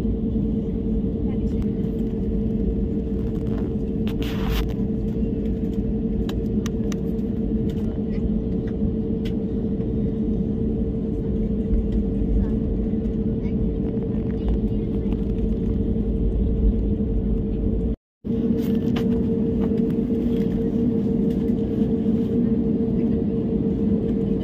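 A jet engine hums loudly and steadily as a plane taxis.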